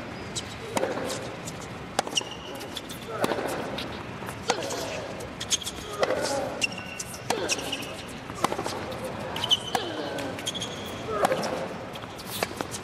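Tennis rackets strike a ball back and forth in a steady rally.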